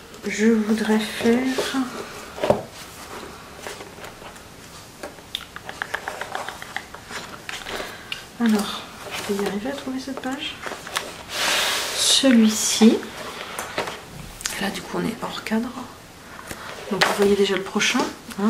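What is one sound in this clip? Paper pages rustle and flip as a book is leafed through.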